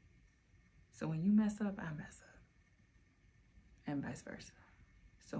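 A woman speaks softly and closely in short phrases.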